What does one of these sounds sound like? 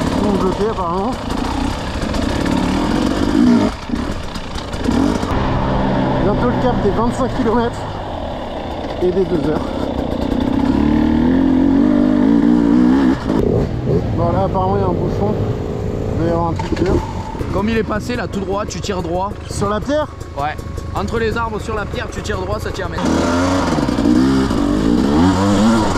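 A motorbike engine revs and whines, rising and falling in pitch.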